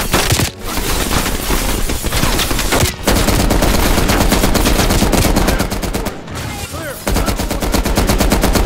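A heavy machine gun fires in rapid, loud bursts.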